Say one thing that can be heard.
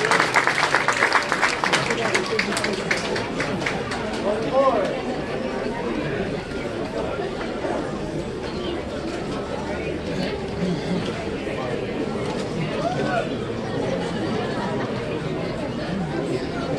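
A crowd of people chatter nearby.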